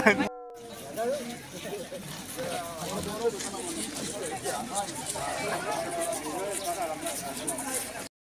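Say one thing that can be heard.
A crowd of children chatter and shout outdoors.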